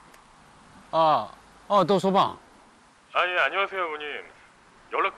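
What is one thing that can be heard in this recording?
An elderly man talks into a phone close by.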